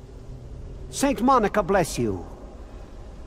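A middle-aged man speaks a short phrase calmly.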